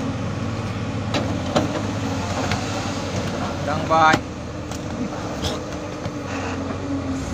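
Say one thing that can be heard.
Heavy carcasses slide and thud onto the mud.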